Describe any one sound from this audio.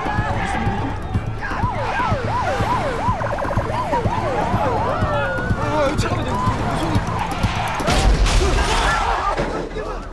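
A crowd of men and women shout and scuffle nearby.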